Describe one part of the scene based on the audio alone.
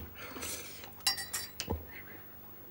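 A spoon clinks against a teacup.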